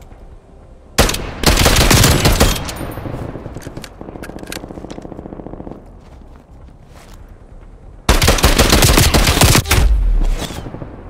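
A rifle fires in rapid bursts of shots.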